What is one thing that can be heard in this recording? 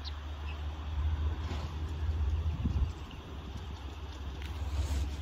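A freight train of tank cars rumbles past on steel rails.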